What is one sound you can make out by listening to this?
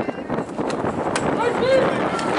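A bat cracks against a softball.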